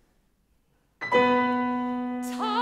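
A young woman sings loudly in a strong operatic voice.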